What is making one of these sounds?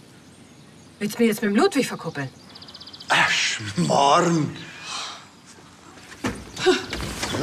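A young woman speaks casually nearby.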